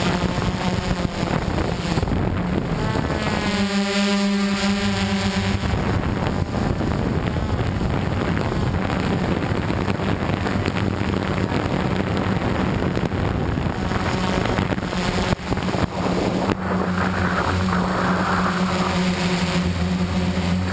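A small drone's propellers buzz and whine steadily close by.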